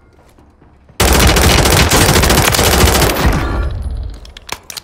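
A rifle fires a rapid, loud burst.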